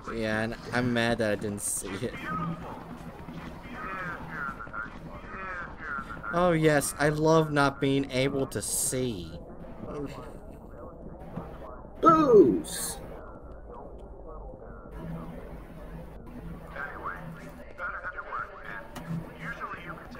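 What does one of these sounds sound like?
A man talks calmly and with animation close to a microphone.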